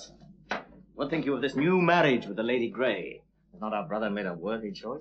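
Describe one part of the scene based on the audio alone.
Another man answers in a conversational voice nearby.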